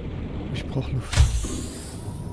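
A metal hatch clunks shut.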